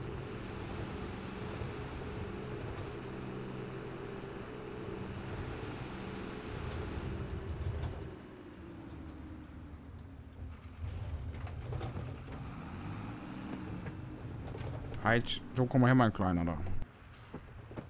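A tractor engine drones steadily, then idles lower.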